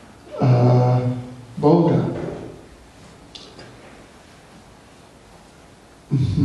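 An elderly man speaks slowly and calmly into a microphone.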